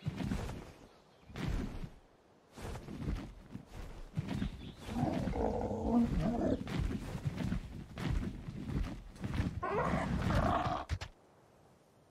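Large wings beat in flight.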